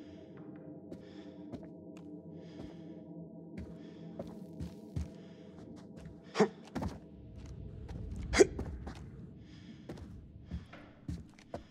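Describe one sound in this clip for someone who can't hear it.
Footsteps thud and creak on wooden floorboards.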